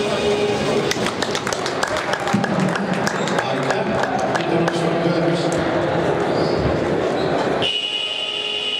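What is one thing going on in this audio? Music plays loudly over loudspeakers in a large echoing hall.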